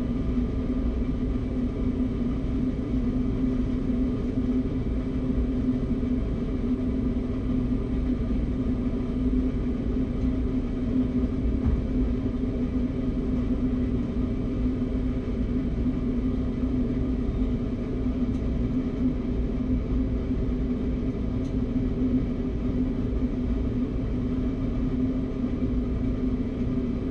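A train's engine idles with a steady low hum.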